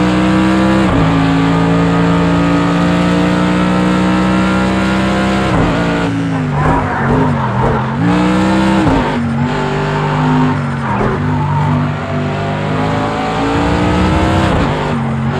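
A racing car engine roars loudly, its pitch dropping and climbing as gears shift.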